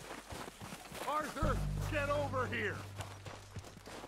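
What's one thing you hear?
A man calls out from a distance.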